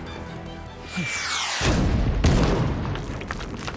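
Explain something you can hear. A loud explosion bursts with a roar.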